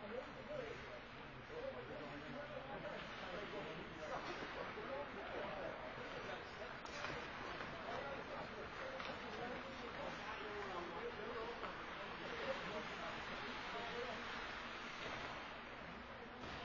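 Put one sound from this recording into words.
Skates scrape and carve across ice in a large echoing rink.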